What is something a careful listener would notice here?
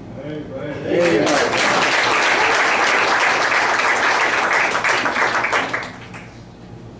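A congregation applauds loudly.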